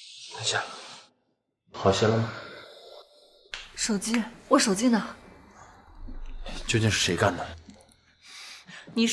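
A young man asks questions with concern, close by.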